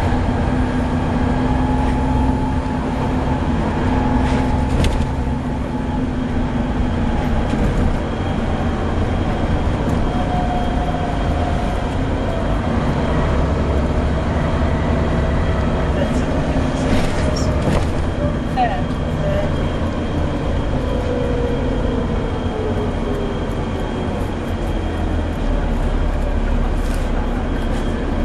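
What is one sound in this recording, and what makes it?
A bus engine rumbles and hums steadily while the bus drives along.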